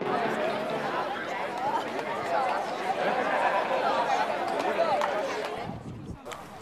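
A crowd of children chatter and laugh close by.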